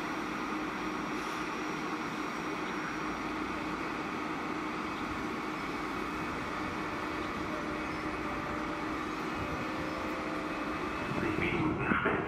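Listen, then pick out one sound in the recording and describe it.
An electric train hums steadily as it stands idling.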